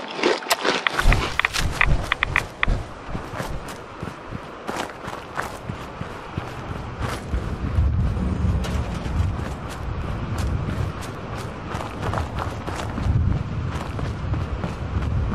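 Footsteps crunch steadily over rough ground outdoors.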